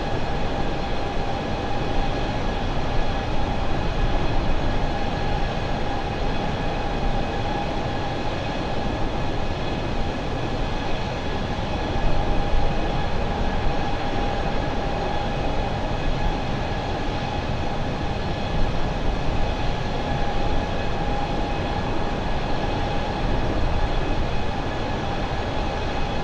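Jet engines roar steadily with a high whine.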